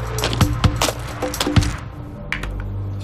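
High heels crunch and click on gravel.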